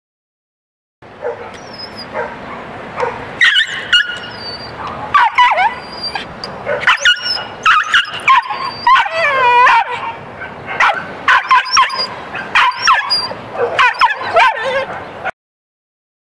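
A small dog howls and yips loudly, close by.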